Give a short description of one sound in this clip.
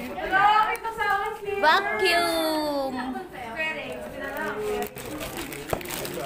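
Plastic wrapping rustles.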